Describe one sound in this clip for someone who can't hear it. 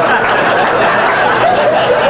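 An audience member claps hands.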